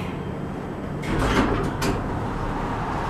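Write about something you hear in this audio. Elevator doors rumble as they slide open.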